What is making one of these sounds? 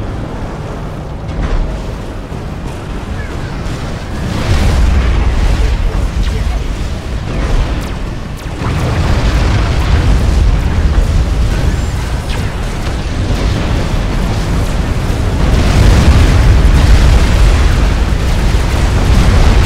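Heavy explosions and gunfire rumble and crack in a battle.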